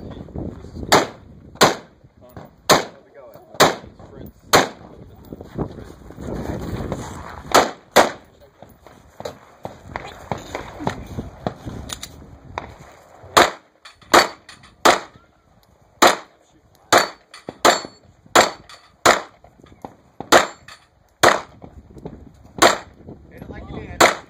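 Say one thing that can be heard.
Pistol shots crack loudly outdoors, one after another, with a short echo.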